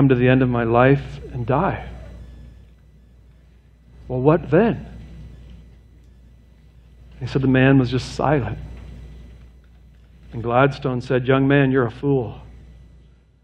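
A man speaks calmly into a microphone in a large echoing hall, pausing between phrases.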